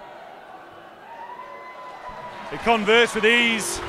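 A crowd in a stand cheers and claps after a kick at goal.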